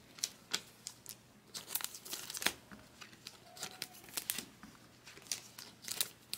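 Trading cards flick and rustle quickly in a hand.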